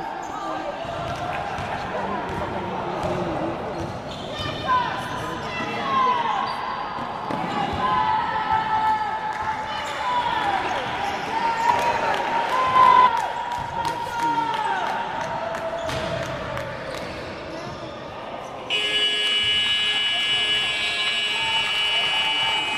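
A basketball bounces on the court floor.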